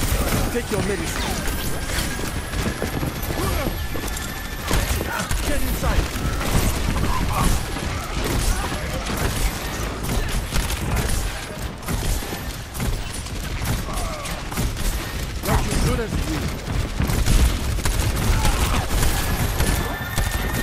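Energy beams hum and crackle.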